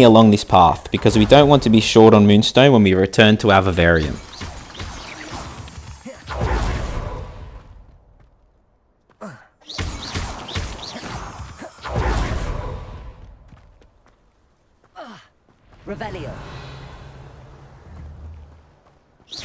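A magic spell bursts with a crackling whoosh.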